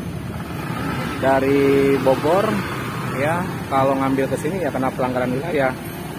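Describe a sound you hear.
A scooter engine hums as it pulls away.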